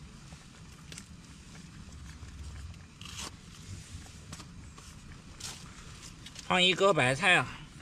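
Cabbage leaves crackle as they are torn by hand.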